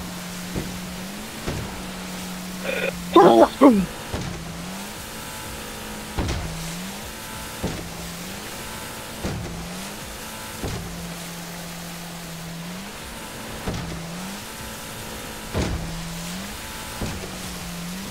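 A boat hull slams against waves with repeated thuds and splashes.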